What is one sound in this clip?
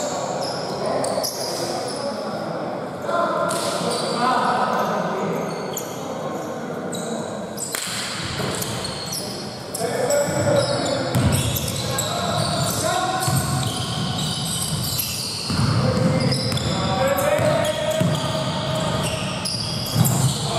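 Men shout and call out to each other across the hall.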